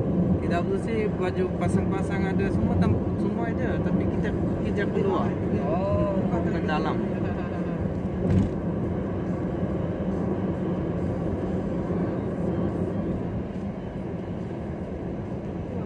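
Tyres roll steadily on a smooth road, heard from inside a moving car.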